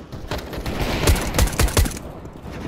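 A silenced pistol fires several quick shots.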